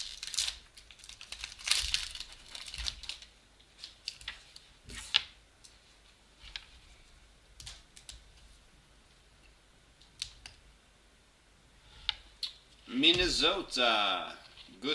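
Glossy trading cards rustle and slide against each other in a hand.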